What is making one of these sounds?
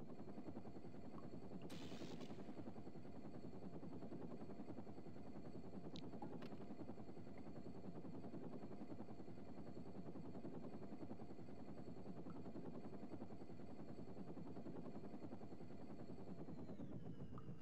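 A hovering vehicle's engine drones steadily.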